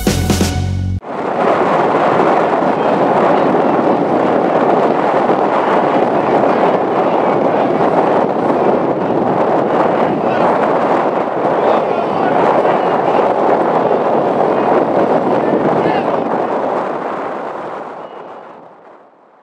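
Water splashes as men wade into a river.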